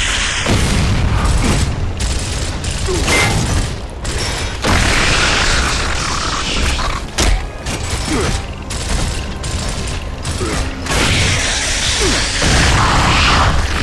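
Explosions boom and rumble in bursts.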